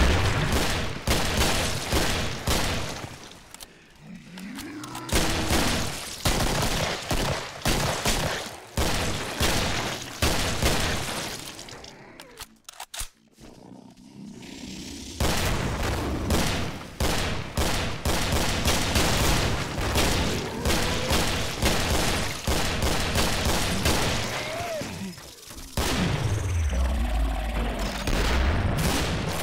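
Rapid gunfire rattles in a long echoing corridor.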